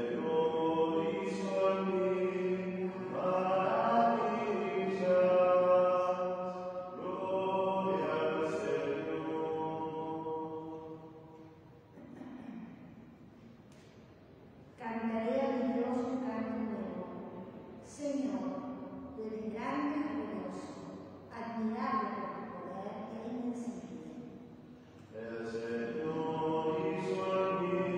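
A woman sings into a microphone, her voice echoing in a large hall.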